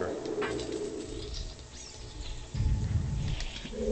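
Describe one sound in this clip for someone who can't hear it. Chains rattle and a heavy lock clanks open.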